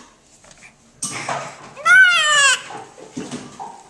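A baby squeals in a high voice close by.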